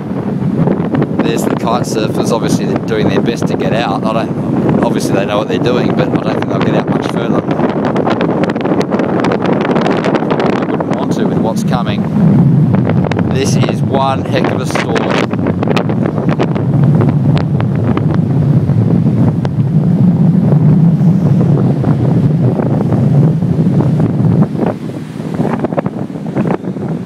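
Waves wash and break on the shore.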